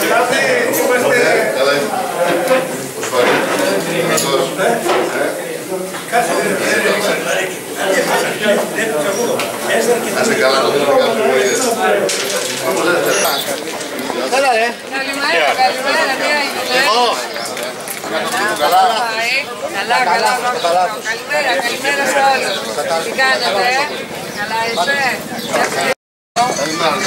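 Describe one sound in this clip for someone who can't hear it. Several men talk and greet one another at once, close by.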